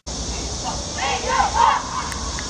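Young women shout together in a loud team cheer.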